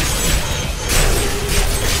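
Fiery spell blasts explode with a roar.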